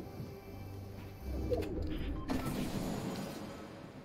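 A treasure chest opens with a bright shimmering chime.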